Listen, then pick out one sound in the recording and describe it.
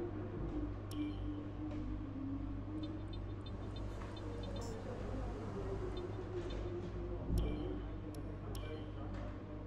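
Short electronic clicks sound as menu choices change.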